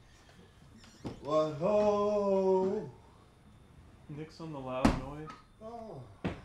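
A man speaks in a tense voice nearby.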